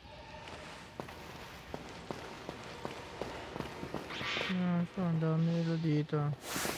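Footsteps patter quickly on hard ground.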